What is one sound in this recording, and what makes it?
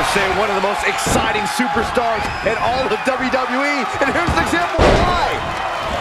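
Bodies slam onto a wrestling ring mat with heavy thuds.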